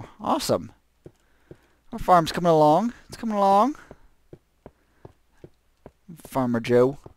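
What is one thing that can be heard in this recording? Footsteps tap on hard stone.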